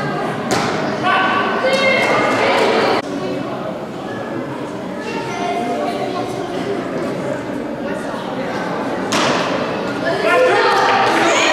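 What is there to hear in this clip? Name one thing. A crowd of children and adults chatters and calls out in a large echoing hall.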